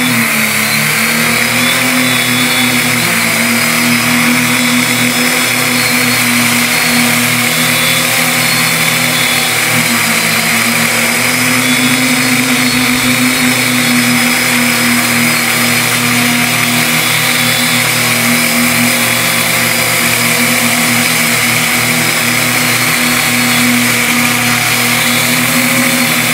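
A drone's rotors buzz steadily close by.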